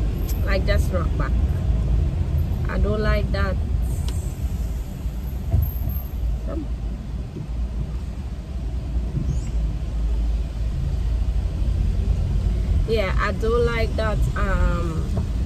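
A young woman talks casually, close by.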